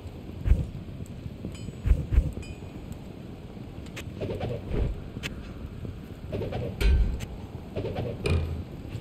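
Soft clicks and thuds sound as gear is moved about.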